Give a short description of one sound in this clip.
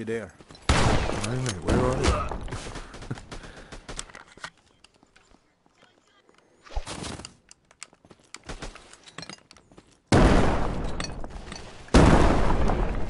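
A gun fires several loud, echoing shots.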